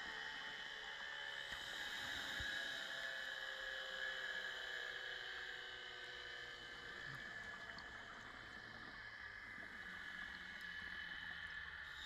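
Scuba divers breathe out through regulators, with bubbles gurgling underwater.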